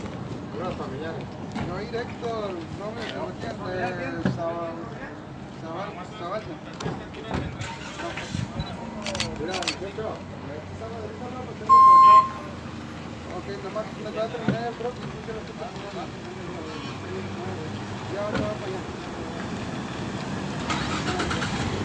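Several men and women talk nearby outdoors.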